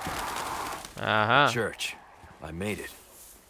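A young man speaks quietly to himself.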